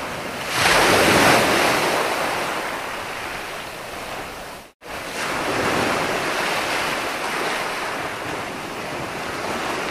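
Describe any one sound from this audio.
Ocean waves break and wash up onto the shore in a steady roar.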